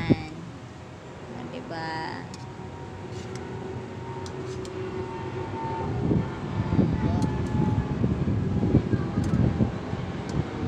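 Metal utensils scrape and clatter against a metal pan.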